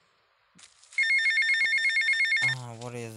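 A mobile phone rings with a rapid electronic trill.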